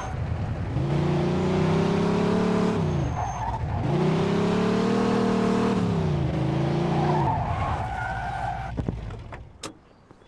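Tyres screech as a car skids.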